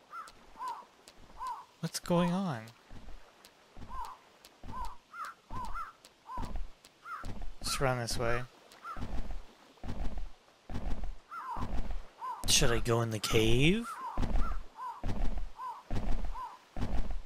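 Footsteps patter over rocky ground.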